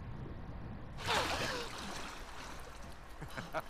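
A young girl gasps for breath after surfacing.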